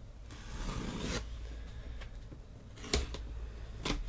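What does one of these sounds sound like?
A blade slices through packing tape on a cardboard box.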